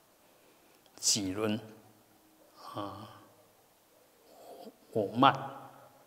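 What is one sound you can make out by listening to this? An elderly man chants slowly in a deep voice through a microphone, with pauses between phrases.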